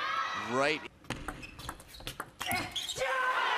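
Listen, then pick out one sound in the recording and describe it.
A table tennis ball clicks sharply off paddles and the table.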